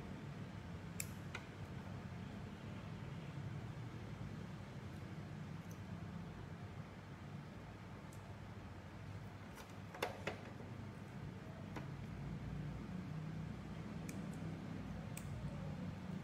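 Small metal scissors snip softly.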